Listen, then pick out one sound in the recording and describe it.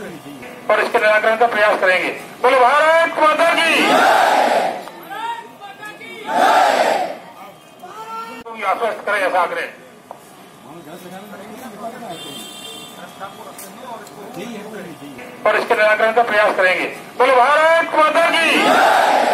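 A large crowd of men chants slogans loudly in bursts outdoors.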